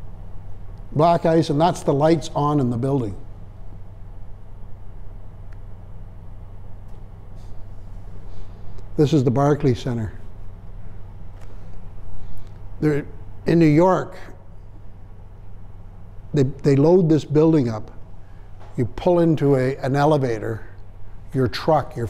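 An older man speaks calmly in a room, in bursts with pauses.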